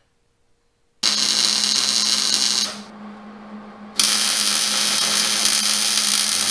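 An arc welder crackles and buzzes loudly in bursts.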